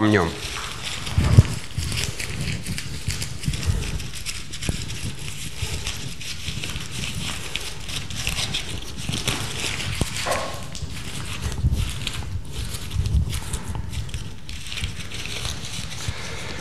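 A man rubs a rough pad between his hands with a scratchy rustle.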